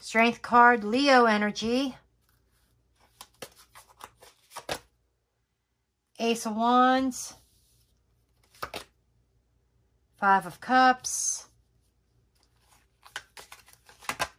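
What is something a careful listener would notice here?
Playing cards slide and tap softly onto a cloth.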